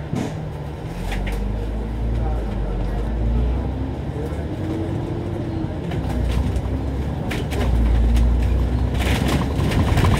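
A tram's motor whines and rises in pitch as it pulls away.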